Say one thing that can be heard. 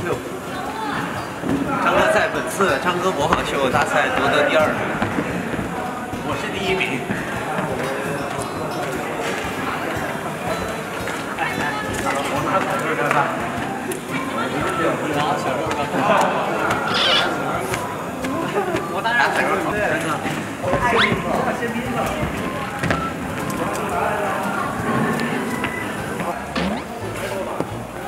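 Young men talk and laugh together nearby.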